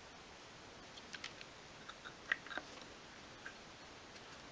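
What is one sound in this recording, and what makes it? Small wooden pieces tap and click softly.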